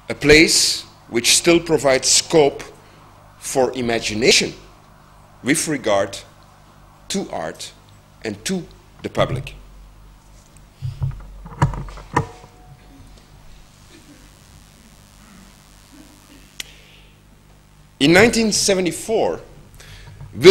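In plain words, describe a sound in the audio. A middle-aged man speaks into a microphone in bursts and pauses, in a room with a slight echo.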